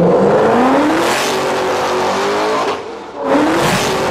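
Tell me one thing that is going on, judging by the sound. A sports car roars past close by and fades away.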